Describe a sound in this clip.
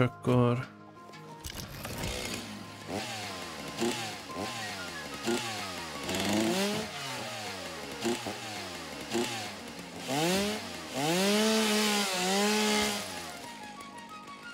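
A power tool whirs and revs up and down repeatedly.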